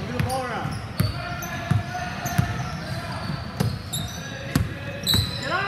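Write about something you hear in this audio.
A basketball bounces on the court with hard thuds.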